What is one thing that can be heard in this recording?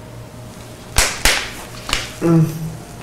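Hands slap sharply against skin.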